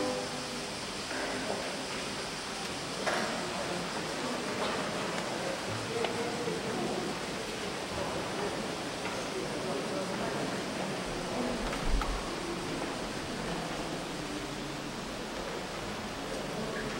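A congregation murmurs and shifts in a large echoing hall.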